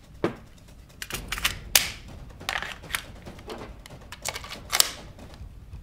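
A pistol clicks and knocks as it is drawn and handled.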